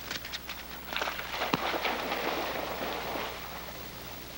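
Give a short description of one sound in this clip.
Something splashes into the water.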